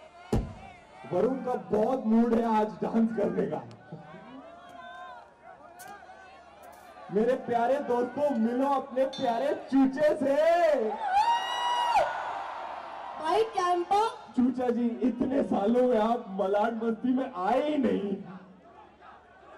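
A man speaks with animation into a microphone over loudspeakers, outdoors.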